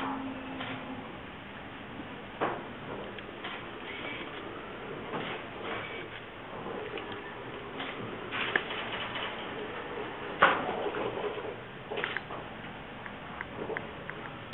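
A robot rolls slowly across the floor with a soft whirring hum.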